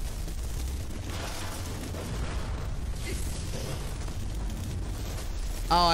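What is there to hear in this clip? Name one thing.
Flames whoosh and crackle as fire spells are cast.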